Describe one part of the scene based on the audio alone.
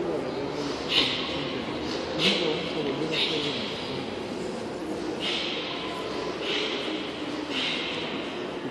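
Wooden staffs swish sharply through the air in a large echoing hall.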